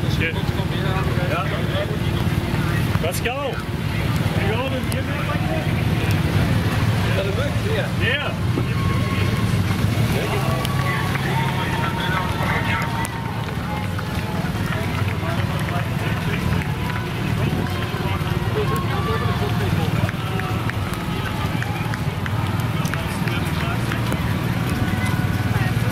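An ambulance engine rumbles as the vehicle drives slowly past close by.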